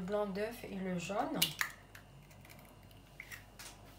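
An eggshell cracks sharply.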